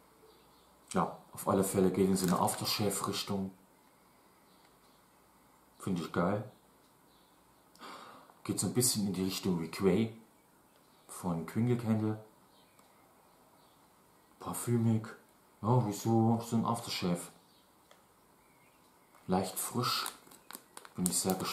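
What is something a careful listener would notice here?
A young man talks calmly close by, in short bursts.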